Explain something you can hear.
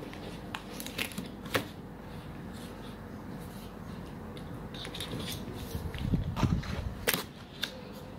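Packing tape peels and crackles off a cardboard box.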